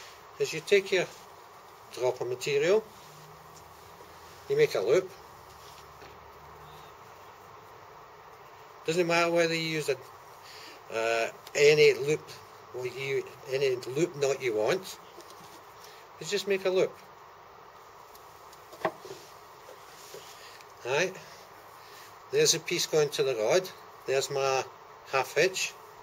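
An elderly man talks calmly and close by, in short bursts with pauses.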